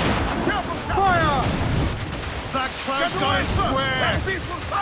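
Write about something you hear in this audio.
Cannons fire with loud, heavy booms.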